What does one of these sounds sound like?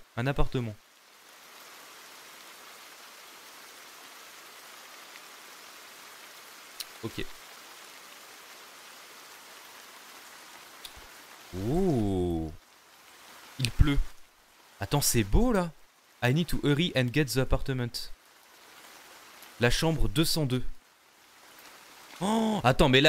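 A young man speaks into a close microphone in short bursts.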